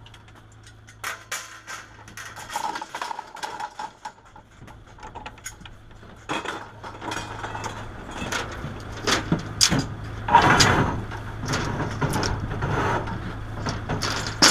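Plastic road cones clatter as workers set them down on the road.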